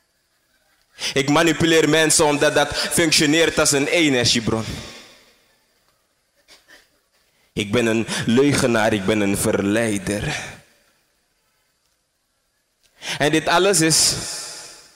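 A man speaks with feeling into a microphone, in bursts with pauses, heard through a loudspeaker.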